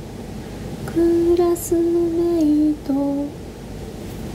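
A young woman hums a few held notes close by.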